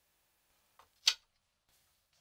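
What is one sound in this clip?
A coin clicks down onto a wooden surface.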